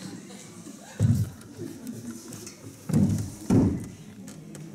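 A box thumps on a wooden floor.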